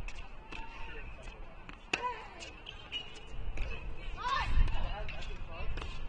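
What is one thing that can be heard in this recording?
Tennis shoes squeak and patter on a hard court.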